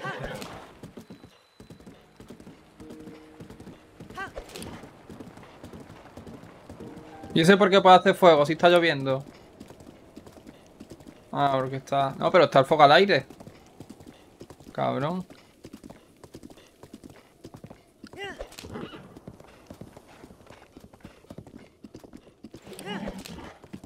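A horse's hooves thud as it gallops.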